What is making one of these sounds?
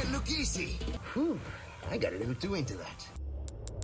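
A man speaks with surprise.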